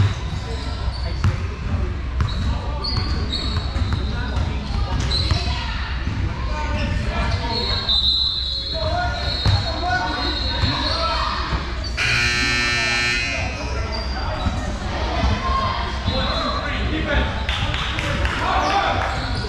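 A crowd of young people chatters in a large echoing gym.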